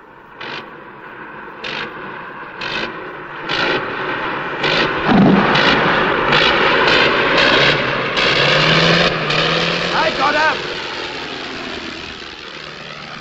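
A propeller plane engine roars as the plane flies low overhead.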